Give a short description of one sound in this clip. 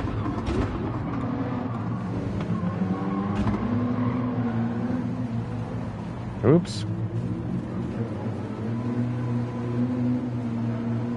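A racing car engine slows and idles low as the car brakes into a tight corner.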